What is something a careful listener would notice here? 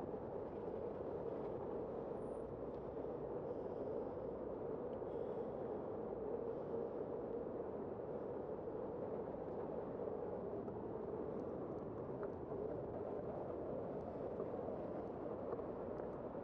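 Traffic rumbles steadily along a city street outdoors.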